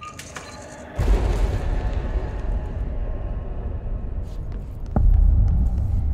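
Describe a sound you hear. A heavy door rumbles open with a deep roar.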